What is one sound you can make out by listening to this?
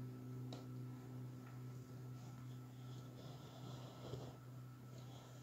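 An electric guitar note rings softly and slowly fades.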